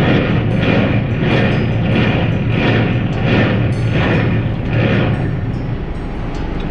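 A hand pump swishes in a steady, rhythmic stroke.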